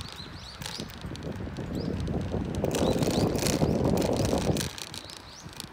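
Wind gusts and rumbles outdoors.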